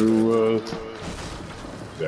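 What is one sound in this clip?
A pickaxe strikes a brick wall.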